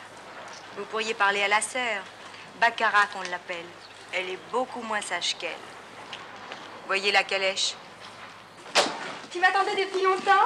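A woman talks with animation nearby.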